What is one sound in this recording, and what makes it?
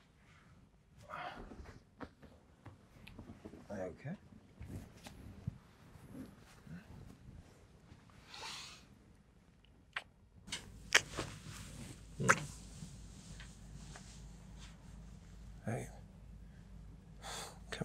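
A young man speaks softly and closely.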